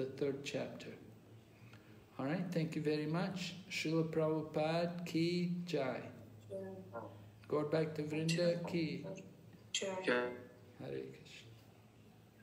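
An elderly man speaks with emphasis, close to a phone microphone.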